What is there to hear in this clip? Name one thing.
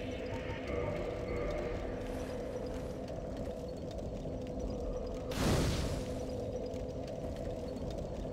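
A fire crackles steadily.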